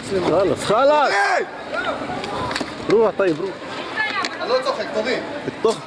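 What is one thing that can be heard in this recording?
Men shout loudly nearby, outdoors.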